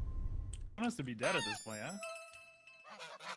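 A short electronic chime plays.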